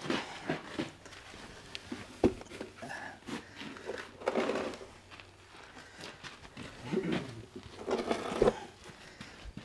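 A wooden box knocks and scrapes as it is set down on the ground.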